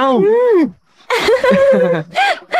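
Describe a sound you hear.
A young woman laughs softly.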